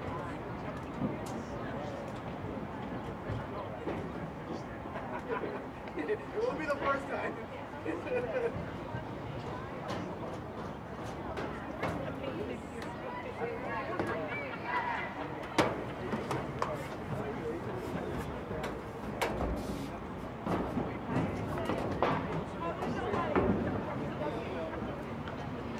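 Young women chatter and call out on an open field.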